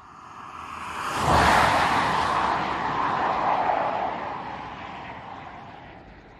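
A car passes close by with a rushing whoosh of wind.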